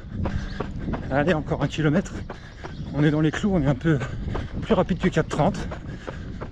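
A young man talks breathlessly and with animation, close to the microphone.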